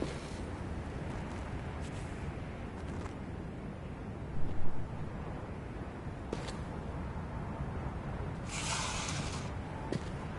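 A candle wick catches fire with a soft whoosh.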